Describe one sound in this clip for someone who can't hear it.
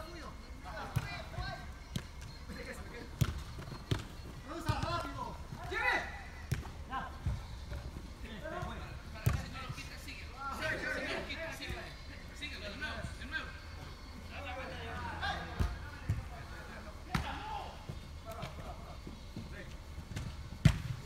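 A football is kicked with sharp thuds, echoing loudly.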